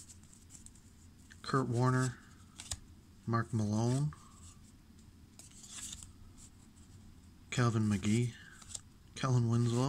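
Stiff trading cards rustle and tap as they are shuffled by hand.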